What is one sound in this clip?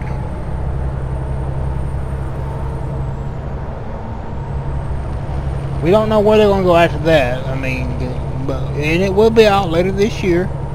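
A truck engine rumbles steadily at a low pitch.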